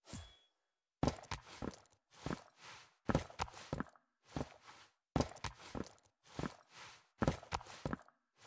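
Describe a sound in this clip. Soft thuds and footfalls land in a quick, uneven rhythm.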